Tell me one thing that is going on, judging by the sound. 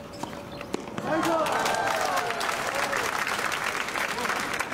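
A small crowd applauds outdoors.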